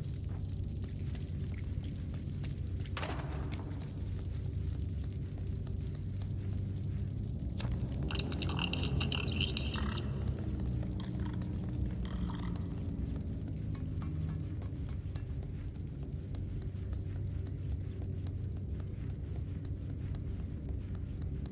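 Small footsteps patter on a hard floor.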